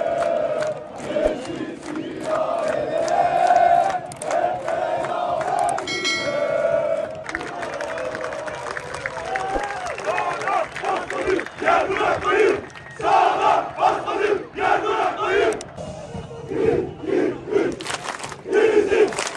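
Fans clap their hands in rhythm.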